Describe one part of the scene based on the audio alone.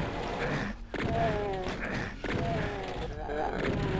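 Monsters growl and snarl.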